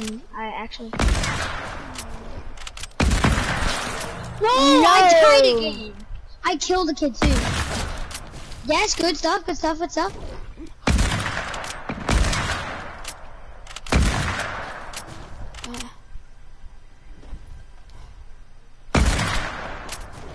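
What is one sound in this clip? Heavy gunshots fire in loud single blasts, spaced a few seconds apart.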